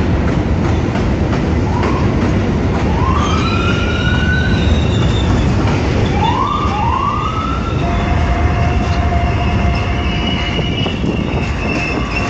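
A subway train rumbles loudly past on elevated tracks.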